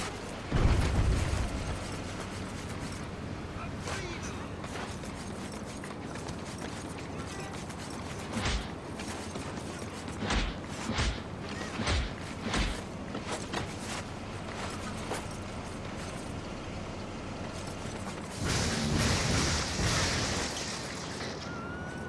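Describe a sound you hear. Game combat thuds and impacts go off in bursts.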